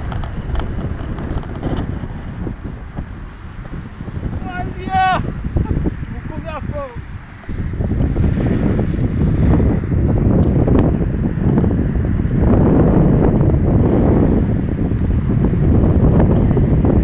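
Wind gusts across the microphone outdoors, rumbling loudly.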